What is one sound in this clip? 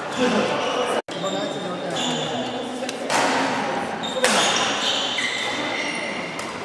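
Rackets strike a shuttlecock in a large echoing hall.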